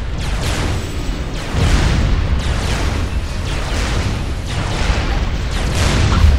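Explosions boom in quick succession.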